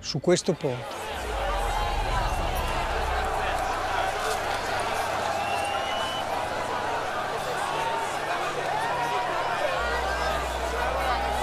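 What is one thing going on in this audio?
A large crowd cheers and chatters excitedly.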